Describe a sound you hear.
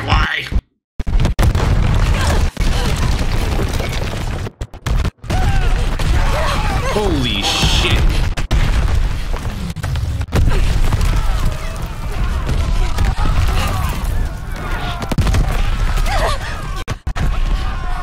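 Explosions boom and rumble close by.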